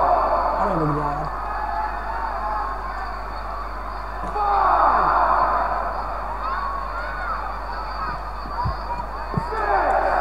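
A large crowd cheers loudly in a big arena.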